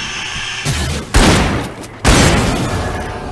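A shotgun fires loud blasts.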